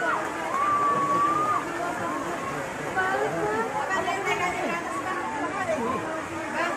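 A crowd of men and women shout and cry out excitedly nearby.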